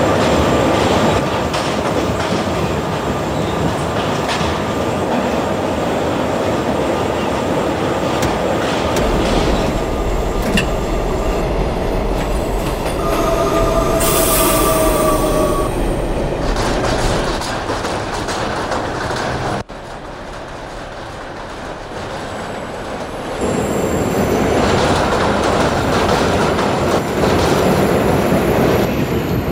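A subway train rumbles and clatters along the tracks.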